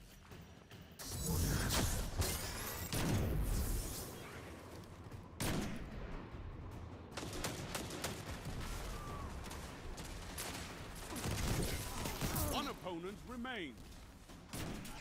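A sniper rifle fires sharp gunshots.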